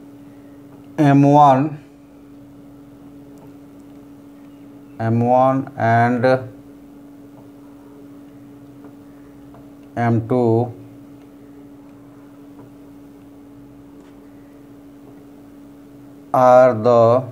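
A man speaks in short, calm bursts, explaining.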